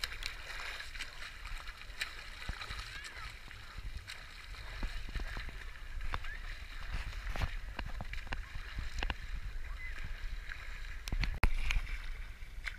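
Water sloshes and bubbles close by.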